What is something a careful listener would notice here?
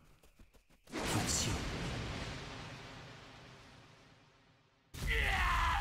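A sword slashes through the air with a loud whoosh.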